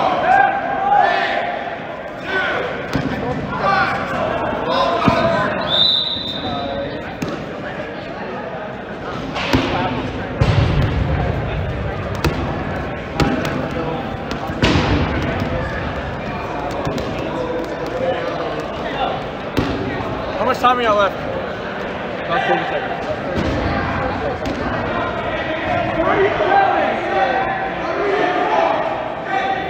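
Players shout and call out across a large echoing gym.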